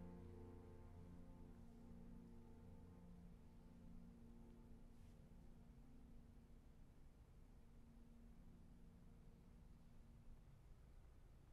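A piano plays a soft chord that slowly dies away.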